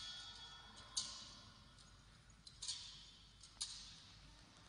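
A metal censer clinks on its chains as it swings, ringing in a large echoing hall.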